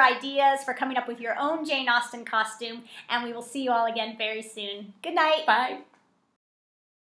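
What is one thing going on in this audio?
A woman speaks cheerfully and animatedly, close by.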